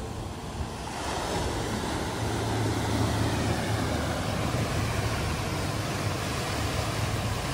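Waves wash over rocks and break on the shore.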